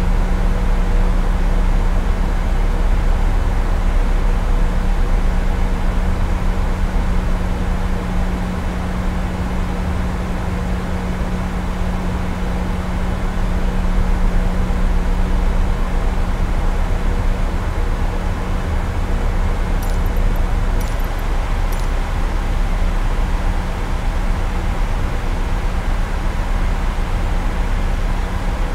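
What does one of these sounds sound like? A jet engine roars with a steady low drone.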